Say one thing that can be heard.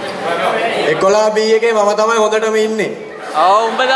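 A young man speaks into a microphone over a loudspeaker.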